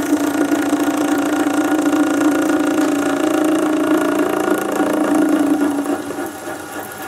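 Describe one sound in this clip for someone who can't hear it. A cutting tool scrapes and whines against spinning metal, then eases off.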